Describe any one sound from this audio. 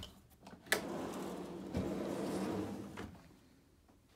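A drawer slides open along its runners.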